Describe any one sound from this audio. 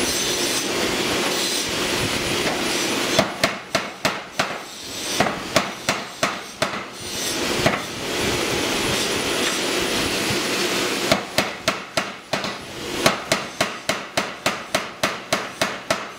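A power hammer's motor hums and whirs steadily.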